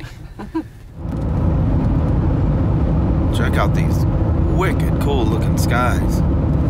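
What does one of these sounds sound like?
Road noise roars steadily inside a moving car.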